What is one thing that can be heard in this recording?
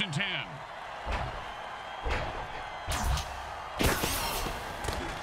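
Armored players crash into each other with heavy thuds.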